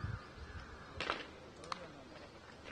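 A cricket bat strikes a ball with a sharp knock.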